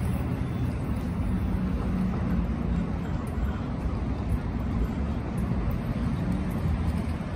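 Outdoors, steady city traffic rumbles along a street.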